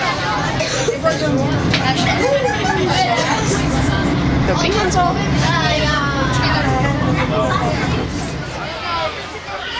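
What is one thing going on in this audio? A train rumbles steadily from inside a carriage.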